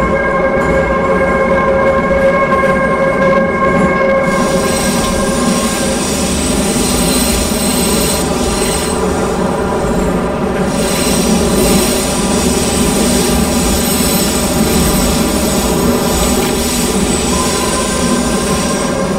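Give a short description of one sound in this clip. A train's electric motor hums with a steady whine as it runs through a tunnel.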